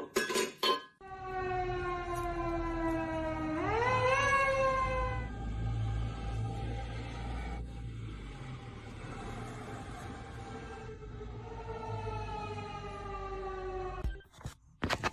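A fire engine siren wails nearby, rising and falling slowly.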